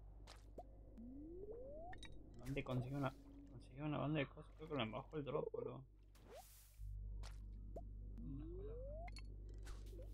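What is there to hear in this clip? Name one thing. A rising electronic tone plays.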